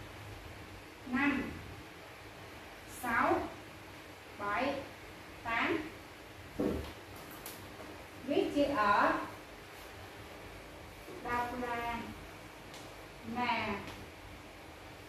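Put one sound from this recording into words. A woman speaks slowly in short, clear words, with pauses between them.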